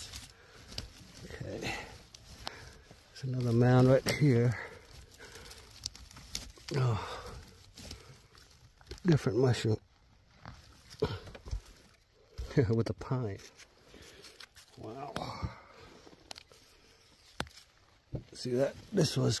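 Dry branches crackle and rustle as a hand pushes them aside.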